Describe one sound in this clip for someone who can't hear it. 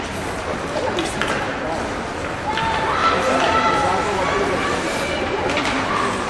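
Hockey sticks click against a puck now and then.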